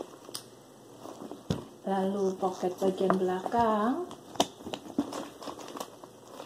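A handbag's leather rustles and its handles knock as it is handled.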